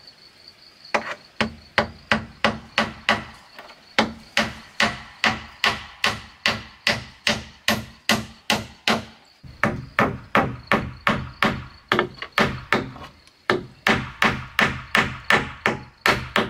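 A hammer strikes nails into wood in quick, steady blows.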